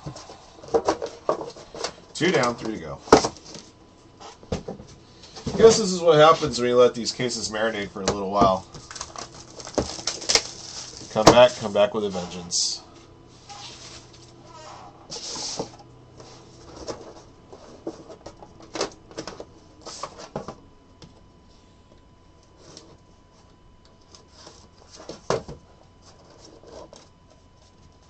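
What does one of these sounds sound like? Cardboard boxes are handled and tapped, with light knocks and scrapes.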